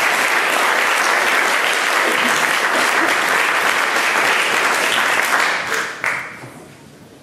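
An audience applauds loudly in an echoing hall.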